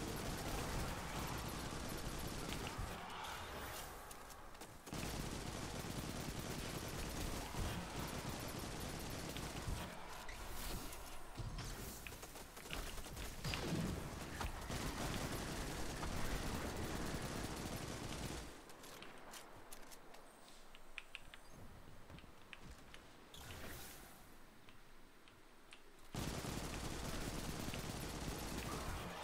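Rapid gunfire and blasts ring out.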